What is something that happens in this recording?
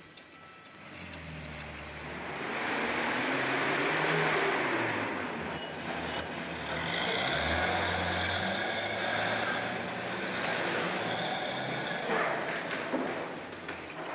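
A bus engine rumbles as a bus pulls in and idles, echoing in a large covered space.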